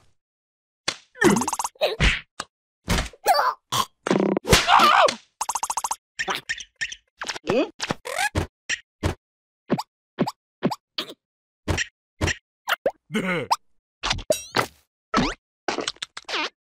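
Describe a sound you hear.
Cartoon creatures babble and squeal in high, comic voices.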